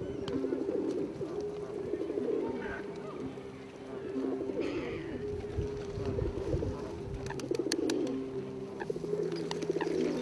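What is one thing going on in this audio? Geese and ducks honk and quack by the water.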